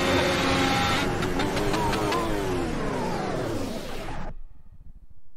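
A racing car engine winds down as the car slows.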